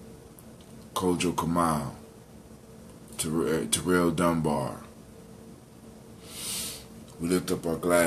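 A man talks close by in short bursts, calmly.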